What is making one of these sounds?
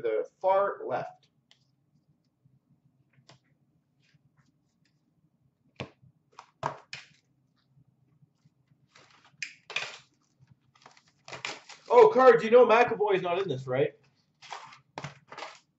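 Cardboard boxes tap and rustle as hands handle them.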